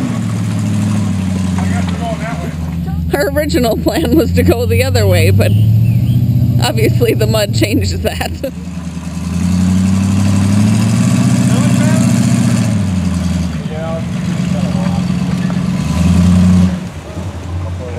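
Tyres churn and spin in thick mud.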